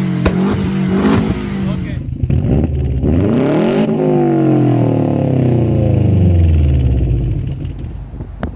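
A car engine revs hard through a loud exhaust, rising and falling.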